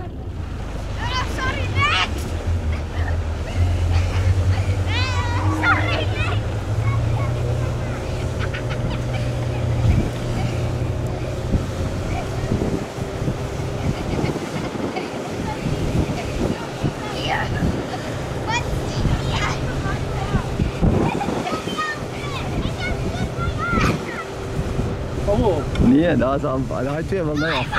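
Young children shout and laugh with excitement outdoors.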